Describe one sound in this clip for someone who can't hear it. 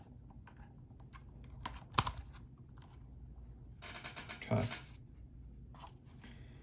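Plastic parts click and rattle as hands handle a small drone.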